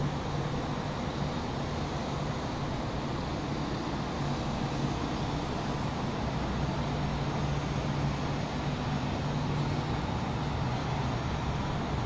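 Boat engines hum steadily across the water.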